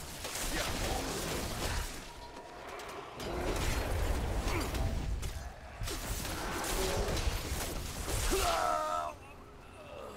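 Heavy blows and blasts crash loudly in a fight.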